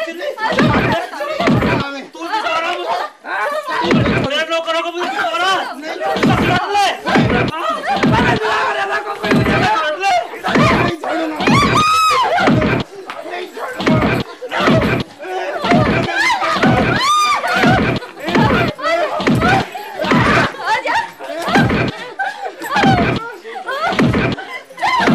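Women shout and scream angrily, close by.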